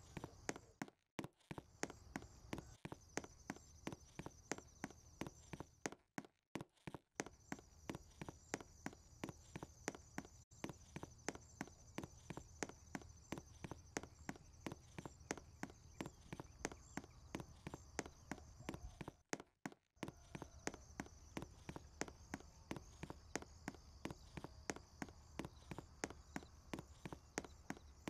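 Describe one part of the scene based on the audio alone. Quick footsteps patter steadily as a game character runs.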